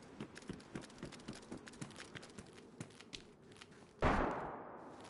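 Footsteps tread quickly over hard ground.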